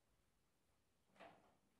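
A piano note is struck sharply.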